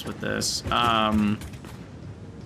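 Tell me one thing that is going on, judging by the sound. A young man speaks loudly and with animation into a close microphone.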